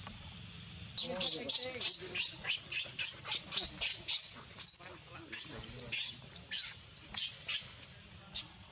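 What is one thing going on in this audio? A baby monkey screeches in rapid, shrill cries.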